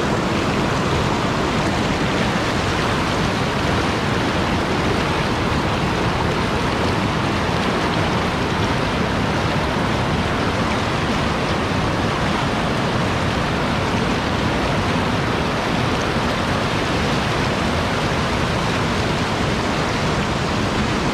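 A fast mountain river rushes and roars loudly over rocks close by.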